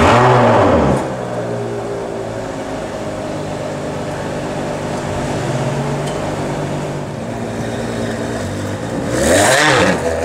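A V12 Ferrari 599 GTO idles.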